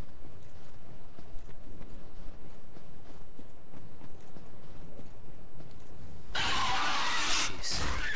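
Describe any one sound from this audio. Footsteps run over snowy ground.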